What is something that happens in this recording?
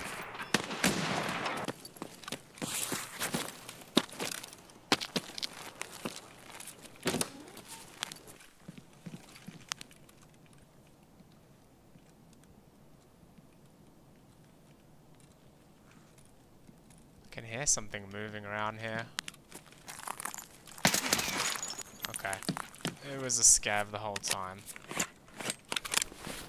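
Footsteps thud across hard ground.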